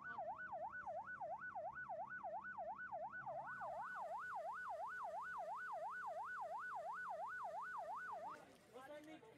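An ambulance siren wails rapidly up and down.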